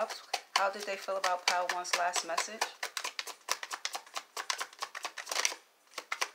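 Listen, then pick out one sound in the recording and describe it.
Playing cards riffle and snap as they are shuffled by hand.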